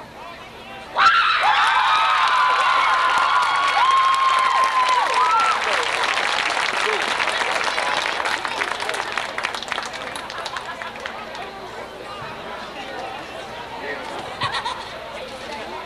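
A crowd in the stands of an outdoor stadium applauds.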